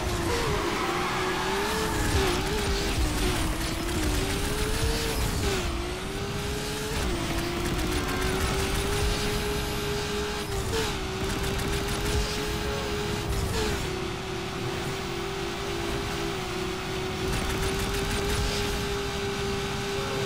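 A racing car engine roars at high revs, its pitch dropping sharply at each gear shift.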